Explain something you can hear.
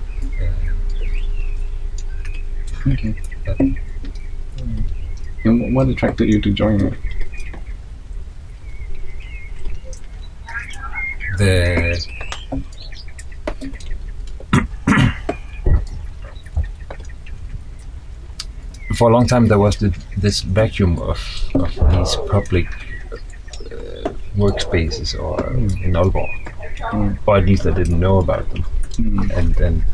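A second man answers in a relaxed voice.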